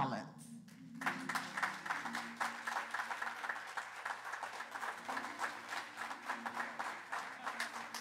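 A crowd claps and applauds steadily.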